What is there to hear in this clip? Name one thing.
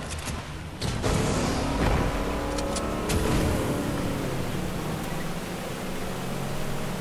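Water splashes and churns behind a speeding boat.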